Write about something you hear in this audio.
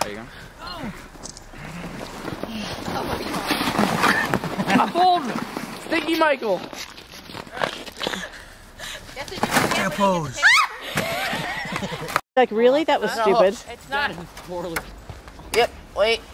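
A young man shouts and laughs excitedly nearby.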